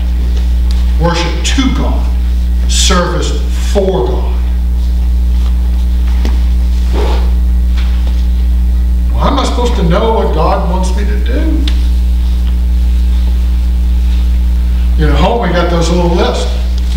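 An elderly man speaks through a microphone in short, emphatic bursts with long pauses.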